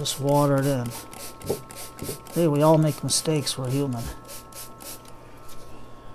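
A spray bottle squirts water in quick bursts.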